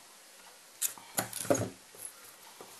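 Small metal pliers click and tap on a hard surface.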